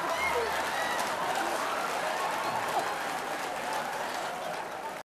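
A man laughs softly close to a microphone.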